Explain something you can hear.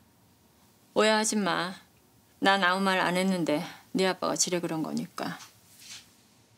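A middle-aged woman speaks earnestly close by.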